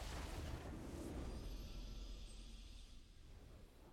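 A triumphant game jingle plays.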